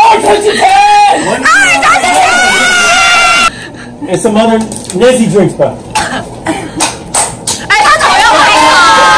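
A group of young men and women laugh and cheer loudly close by.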